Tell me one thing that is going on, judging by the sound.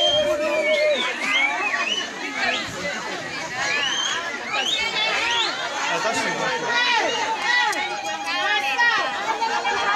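A lively crowd of women and men chatter and call out loudly close by.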